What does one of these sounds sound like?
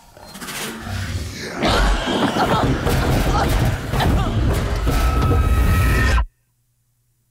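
A young woman gasps and shrieks in fright.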